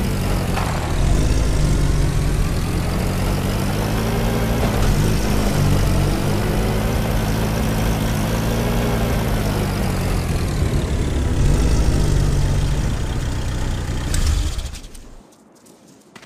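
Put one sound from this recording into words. A jeep engine rumbles steadily as it drives.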